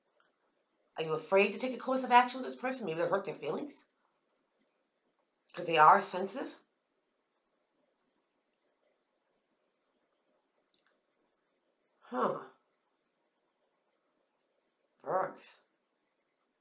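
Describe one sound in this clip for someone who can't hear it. A middle-aged woman speaks close to a microphone with animation, in short bursts with pauses.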